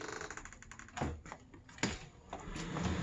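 A security door rattles open.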